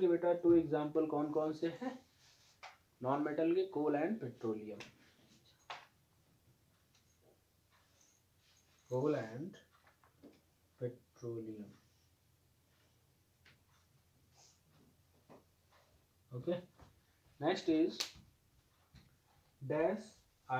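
A man speaks calmly and clearly, close by, in short bursts with pauses.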